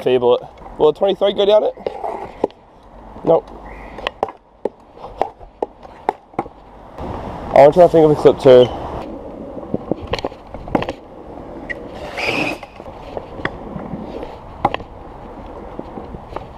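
Scooter wheels roll and rattle over paving stones.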